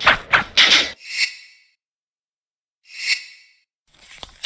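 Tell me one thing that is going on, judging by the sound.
A shimmering chime sounds as a menu ring turns.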